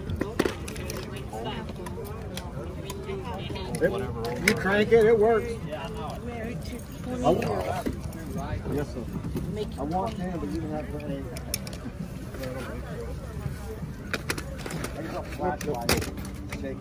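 Small metal toy cars clink and rattle as a hand rummages through them.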